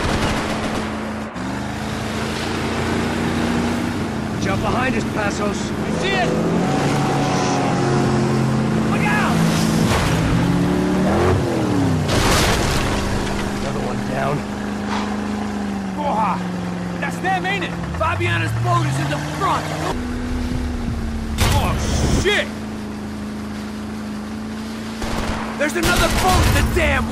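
A motorboat engine drones steadily, rising and falling in pitch.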